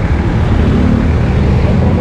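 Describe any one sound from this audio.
A jeepney engine drives past.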